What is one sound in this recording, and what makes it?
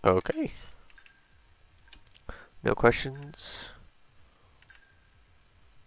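Soft menu clicks beep as selections change.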